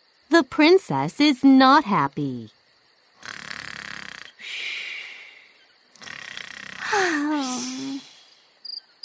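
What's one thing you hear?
A young girl speaks with distress, up close.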